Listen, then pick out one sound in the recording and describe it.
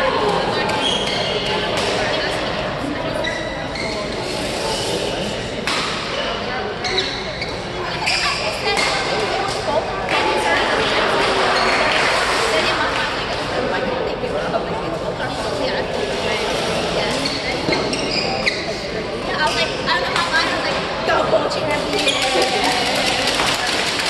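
Shuttlecocks are struck with sharp pops of rackets.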